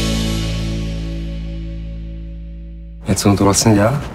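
A band plays a sustained chord.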